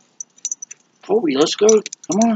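A dog barks close by.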